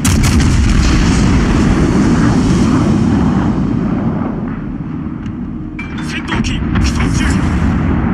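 Shells explode with deep blasts.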